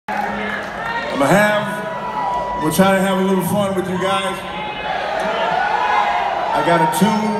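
A singer sings into a microphone over loudspeakers.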